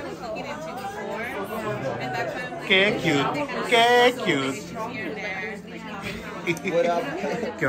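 A young man and a young woman talk and laugh close by.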